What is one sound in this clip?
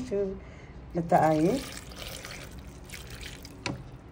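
Water pours into a plastic jug.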